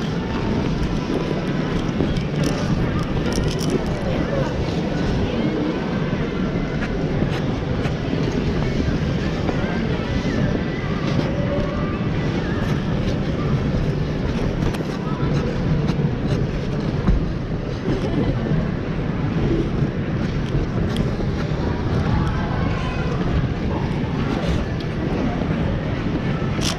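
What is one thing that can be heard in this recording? Ice skate blades scrape and hiss across the ice close by.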